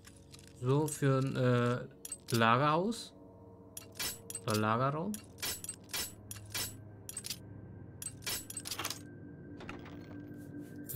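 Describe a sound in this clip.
Lock pins click sharply as a lock is picked.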